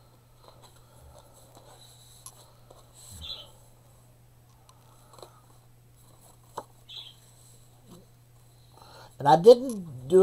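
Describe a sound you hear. Paper rustles and slides softly.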